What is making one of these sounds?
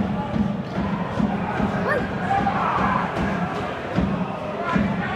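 Young men shout to each other across an open outdoor pitch.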